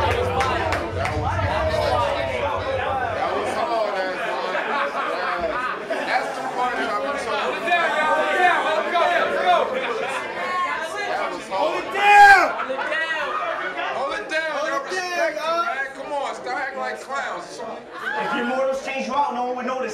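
A crowd murmurs and shouts.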